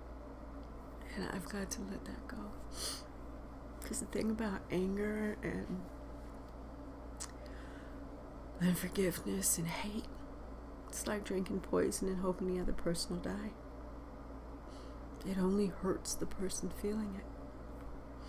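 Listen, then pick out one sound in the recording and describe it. A woman speaks calmly and slowly, close to a microphone, with pauses.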